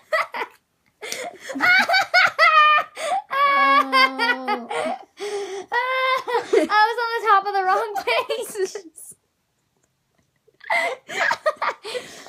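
A boy talks and laughs close by.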